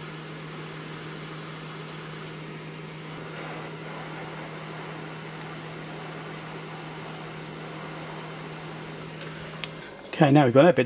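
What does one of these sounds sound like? A heat gun blows with a steady hum.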